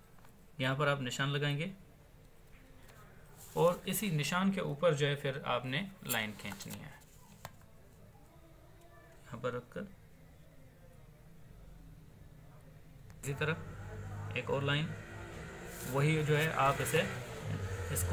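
A pencil scratches lightly across paper.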